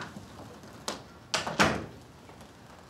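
A door bangs shut nearby.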